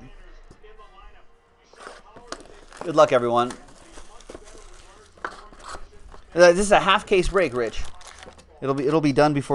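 A cardboard box is handled and its lid opened.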